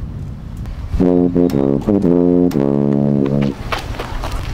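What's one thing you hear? A tuba plays a loud, bouncing melody.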